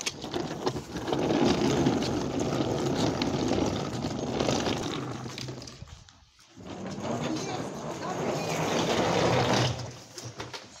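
A suitcase's wheels rumble loudly over rough pavement.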